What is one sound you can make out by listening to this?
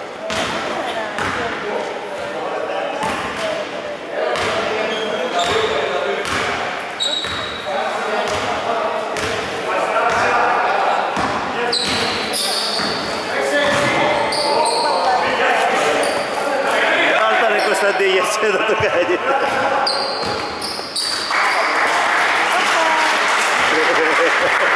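A basketball bounces on a wooden court, echoing in a large hall.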